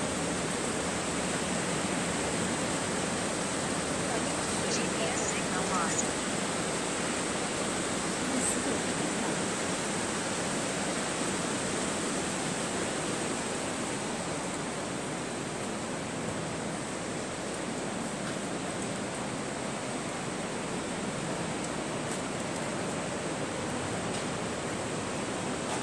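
A river rushes over rocks.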